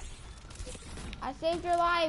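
A rifle fires in quick bursts of gunshots.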